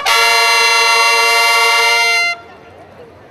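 A brass band plays a loud held chord outdoors.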